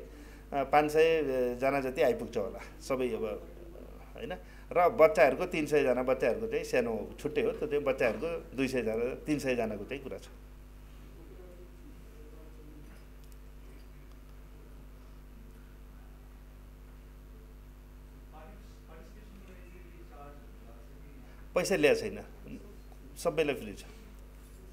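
A middle-aged man speaks calmly into microphones, with pauses.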